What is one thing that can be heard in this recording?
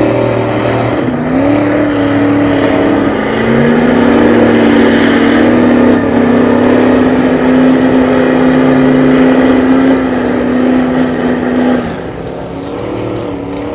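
A big truck engine roars loudly as it revs hard.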